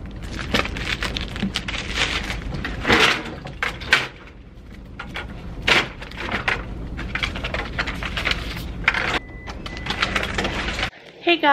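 A printer hums steadily.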